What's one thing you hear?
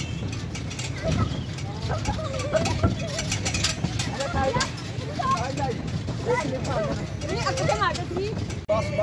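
Children shout and call out playfully nearby.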